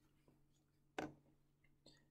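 Glass clinks softly against glass.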